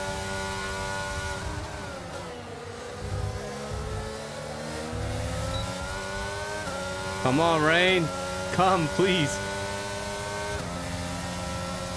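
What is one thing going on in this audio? A racing car engine whines, dropping in pitch as it slows and rising again as it speeds up.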